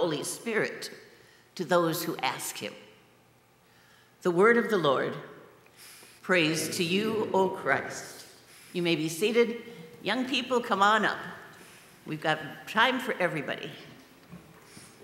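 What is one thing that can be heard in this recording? A woman speaks calmly into a microphone in an echoing room.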